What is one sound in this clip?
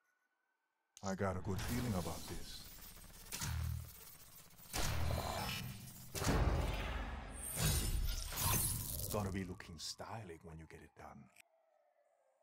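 A loud whooshing burst of game sound rises and fades.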